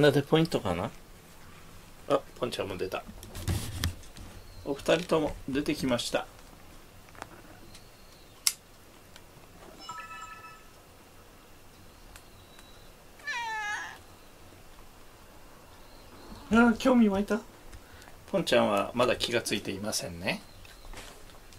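A cat meows repeatedly.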